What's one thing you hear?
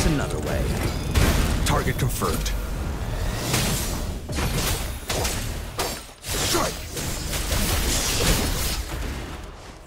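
Blades swing and strike with sharp impacts in quick succession.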